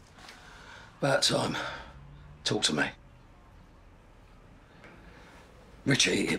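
A man speaks on a phone in short, calm bursts.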